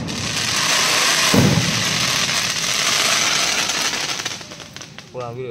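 Fireworks crackle and sizzle overhead.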